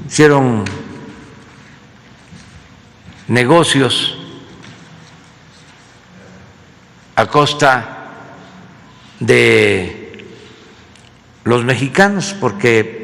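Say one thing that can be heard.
An elderly man speaks slowly and deliberately into a microphone, in bursts separated by pauses, with a slight echo.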